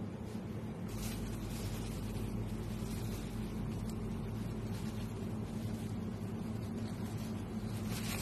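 A long knife slices slowly through a wheel of hard cheese.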